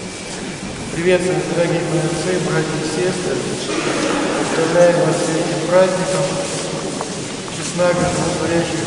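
An older man chants loudly in a resonant voice in an echoing hall.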